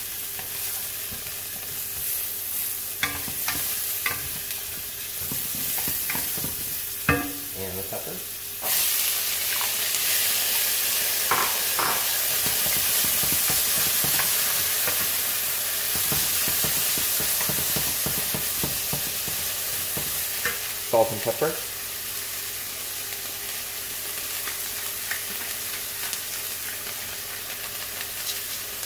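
Food sizzles in a hot pan.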